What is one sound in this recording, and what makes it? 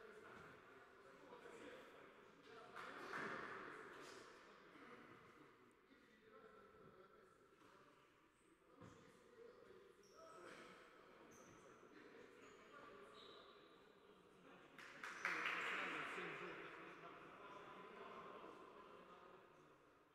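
A ball is kicked and bounces on a hard floor.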